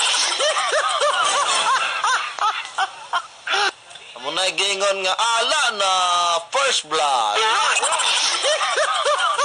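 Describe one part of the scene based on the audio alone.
A young man speaks with animation into a microphone, heard over a radio broadcast.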